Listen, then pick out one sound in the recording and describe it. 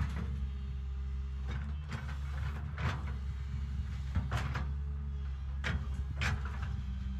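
A diesel excavator engine rumbles steadily nearby.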